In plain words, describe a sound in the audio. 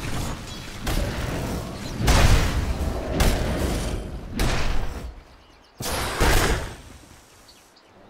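Blows and impacts thud in quick bursts.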